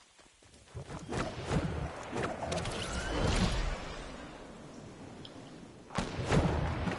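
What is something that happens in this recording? Wind rushes loudly past during a glide.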